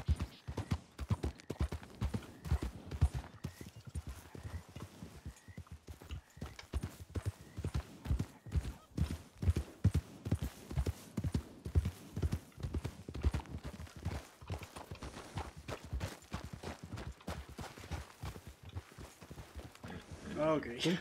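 A horse's hooves thud rapidly on soft ground.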